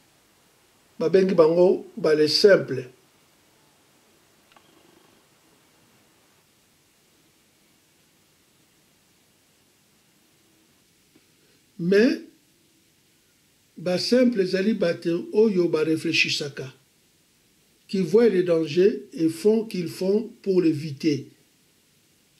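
An elderly man speaks slowly and earnestly close to the microphone, with long pauses.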